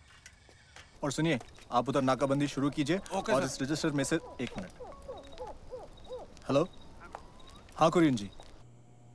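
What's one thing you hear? Men talk urgently outdoors at night.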